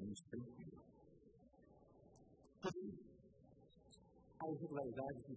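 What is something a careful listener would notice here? A middle-aged man speaks earnestly into a microphone.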